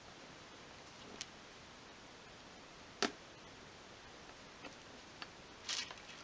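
Small wooden sticks tap and click against each other.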